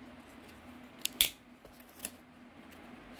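A knife clicks as it is pulled from a foam case.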